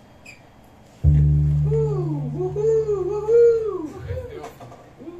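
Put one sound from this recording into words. An electric keyboard plays deep, held chords.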